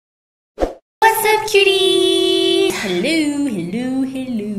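A young woman speaks cheerfully with animation.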